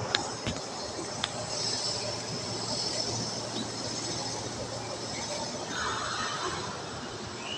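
A train rumbles slowly along the track nearby.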